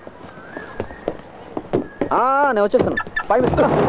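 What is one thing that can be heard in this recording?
A car door clicks open and thuds shut.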